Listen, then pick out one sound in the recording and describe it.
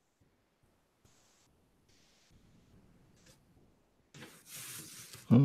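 A pencil scratches across paper in short strokes.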